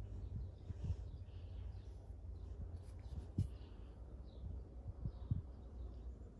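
A steel bar knocks lightly against an anvil.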